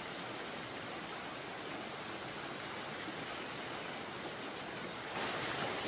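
A woman splashes water with her hands.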